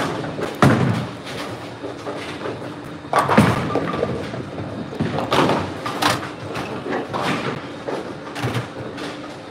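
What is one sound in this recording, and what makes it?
Bowling balls roll down wooden lanes and crash into pins in a large echoing hall.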